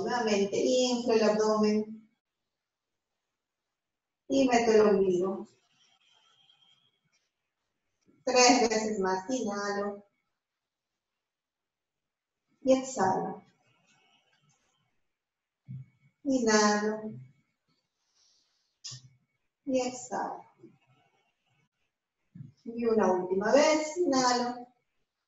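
A woman speaks calmly in short phrases with pauses.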